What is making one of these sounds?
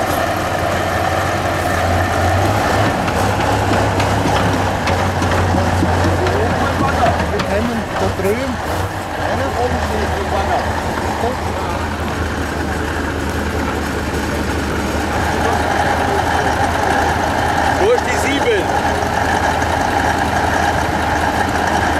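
A heavy truck engine rumbles and strains loudly.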